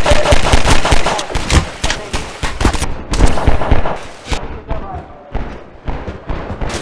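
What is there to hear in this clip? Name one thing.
A pistol fires sharp shots in quick succession.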